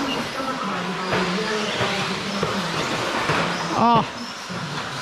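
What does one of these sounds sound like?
Plastic tyres skid and rattle on a hard track.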